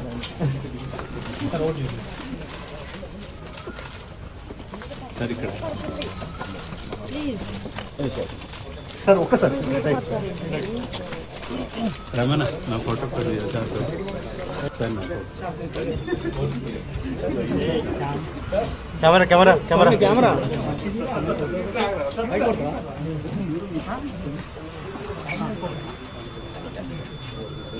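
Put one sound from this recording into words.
A crowd of men and women talk at once nearby.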